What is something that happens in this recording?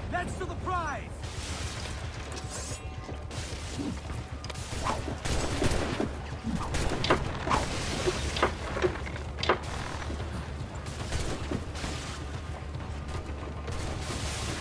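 Waves wash against wooden ships.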